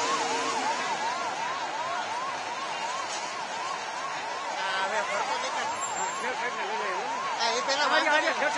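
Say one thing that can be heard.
A fire engine siren wails rapidly up and down.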